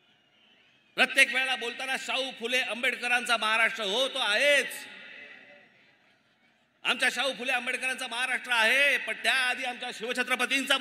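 A man speaks forcefully into a microphone over loudspeakers.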